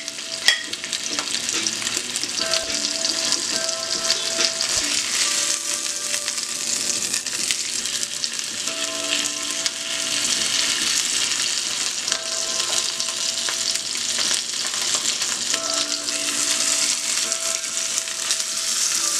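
Meat sizzles loudly in hot oil.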